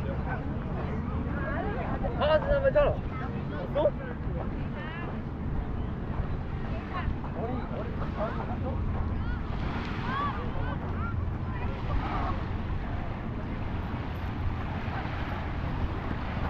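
Children shout and chatter at a distance outdoors.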